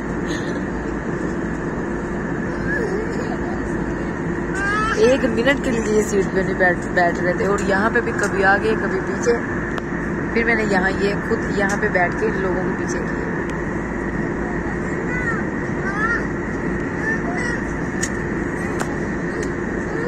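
A steady low hum of aircraft engines fills a cabin.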